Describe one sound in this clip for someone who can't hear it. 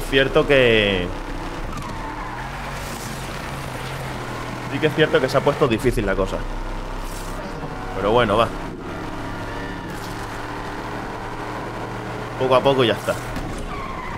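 A car engine roars and revs up hard, rising in pitch with each gear change.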